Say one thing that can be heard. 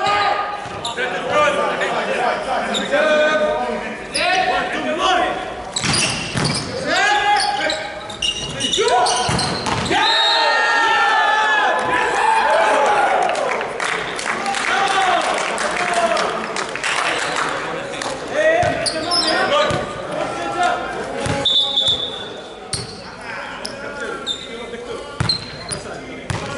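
Men call out to each other across an echoing hall.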